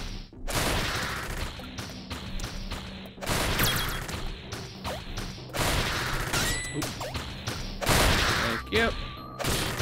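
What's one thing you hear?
Retro video game music and effects play.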